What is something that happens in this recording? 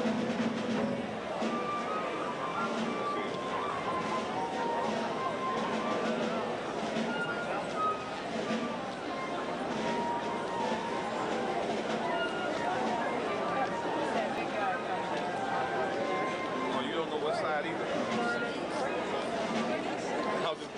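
A large crowd of men and women talks and murmurs loudly in a reverberant hall.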